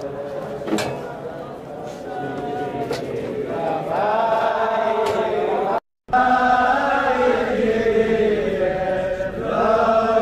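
A large crowd of men sings loudly together outdoors.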